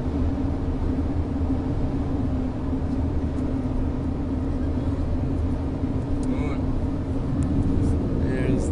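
Tyres roar steadily on a paved road.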